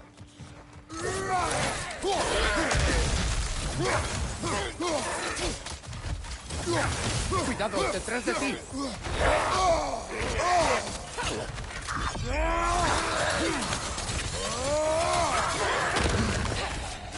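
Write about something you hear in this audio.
Creatures snarl and growl.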